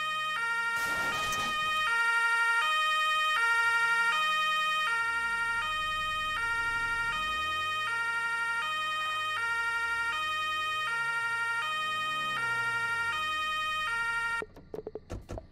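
A police siren wails in a steady two-tone pattern.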